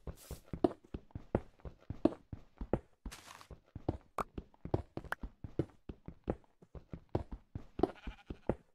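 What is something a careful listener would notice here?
A pickaxe chips rapidly at stone blocks in a game.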